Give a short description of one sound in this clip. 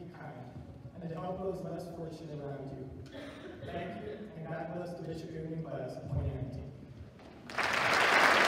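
A young man speaks calmly into a microphone in a large hall.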